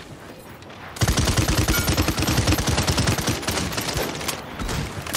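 A gun fires in a rapid, steady stream of shots.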